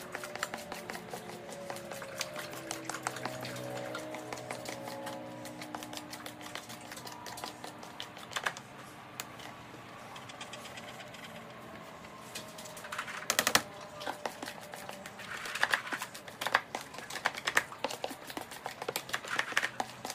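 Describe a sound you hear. Loose grains rattle and scrape inside a plastic container.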